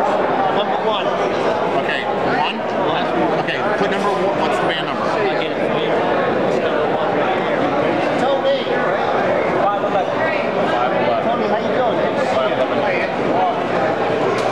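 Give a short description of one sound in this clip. Many people chatter all around in a large, echoing hall.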